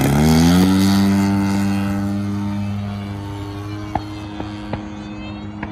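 A model plane drones overhead and slowly fades into the distance.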